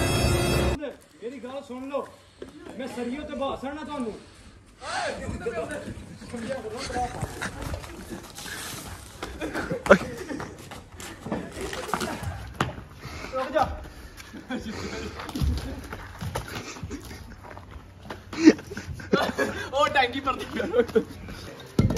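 Young men shout and laugh loudly outdoors.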